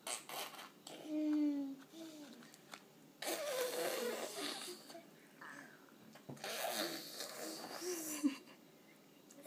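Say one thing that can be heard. A toddler babbles and coos close by.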